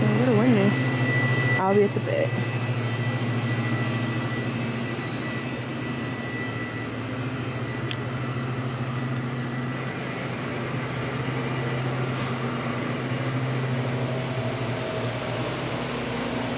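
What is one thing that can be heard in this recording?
Refrigerated coolers and drink machines hum steadily.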